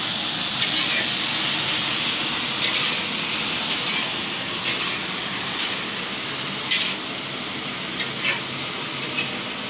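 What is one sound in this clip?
A metal spoon scrapes and knocks against a wok.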